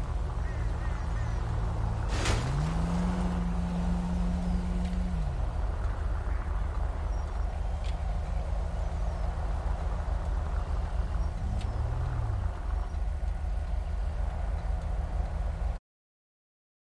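A car engine rumbles steadily at low speed.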